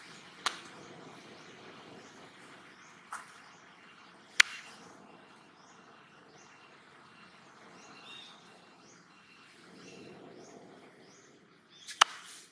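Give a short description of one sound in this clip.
A monkey rustles softly in dry leaves.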